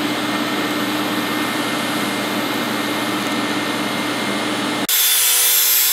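A welding arc buzzes and crackles steadily.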